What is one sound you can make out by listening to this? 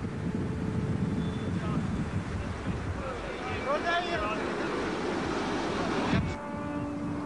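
Wind blows across open water.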